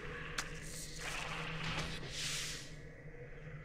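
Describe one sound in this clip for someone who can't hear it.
Lightning crackles sharply.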